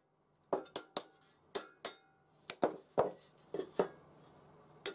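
A hammer taps on thin sheet metal.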